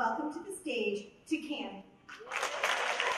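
A woman speaks into a microphone over a loudspeaker, in an echoing hall.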